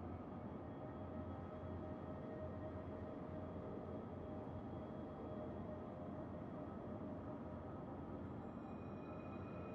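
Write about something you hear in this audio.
Waves wash against a ship's hull.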